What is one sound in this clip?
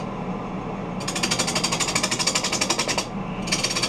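A bowl gouge cuts into a spinning holly bowl with a rhythmic rasp.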